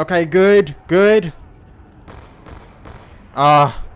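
Pistol shots fire in quick succession.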